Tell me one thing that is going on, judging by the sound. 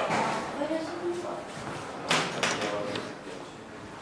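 An elevator call button clicks.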